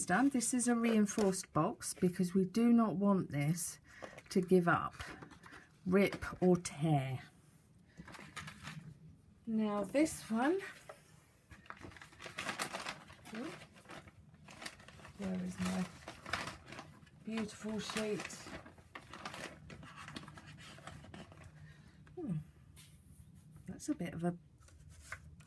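Stiff paper slides and rustles across a cutting board.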